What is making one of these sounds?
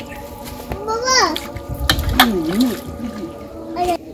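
Water splashes in a metal bowl as meat is washed by hand.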